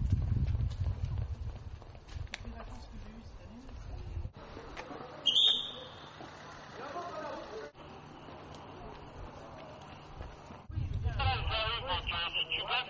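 Runners' footsteps patter on a paved road.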